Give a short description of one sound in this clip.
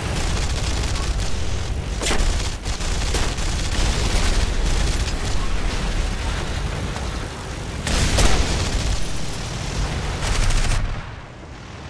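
A propeller plane's engine roars steadily.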